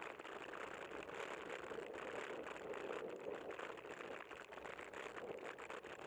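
Tyres roll on the road with a steady rumble.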